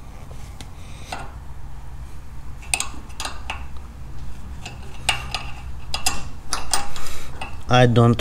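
Small metal parts click and scrape under hands at work.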